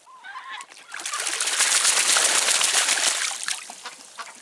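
A duck splashes and flaps its wings in water.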